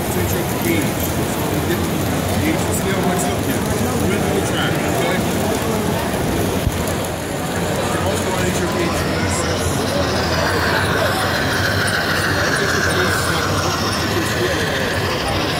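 A model train rattles along its track.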